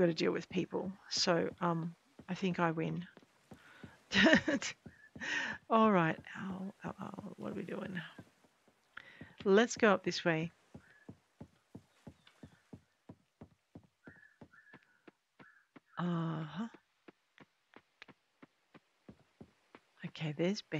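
A woman talks calmly and with animation into a close microphone.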